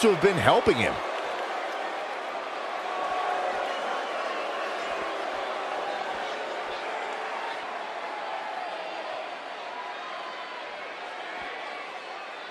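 A large crowd cheers and roars steadily in a big echoing arena.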